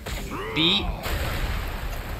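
A magical blast crackles and booms.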